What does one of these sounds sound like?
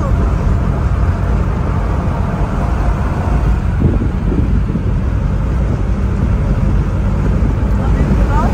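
Wind rushes past the car's window.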